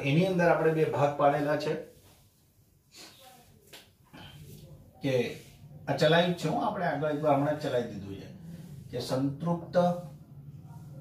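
A young man explains calmly and clearly, close by.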